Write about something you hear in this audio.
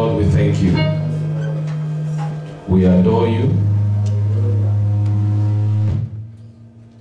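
A man sings slow held notes into a microphone.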